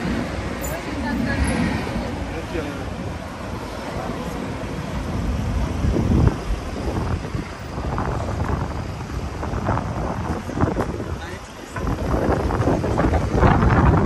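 Men and women chatter nearby as they pass.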